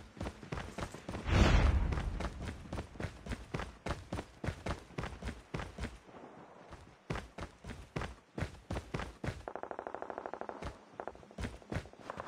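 Footsteps thud quickly and evenly on hard ground.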